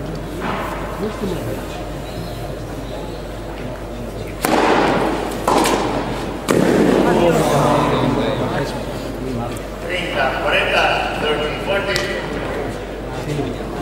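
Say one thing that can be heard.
Tennis rackets strike a ball back and forth in a hall.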